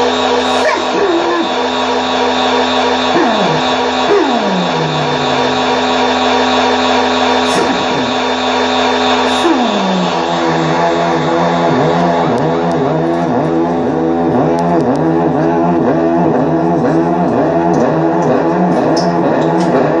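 Electronic synthesizers drone loudly through speakers.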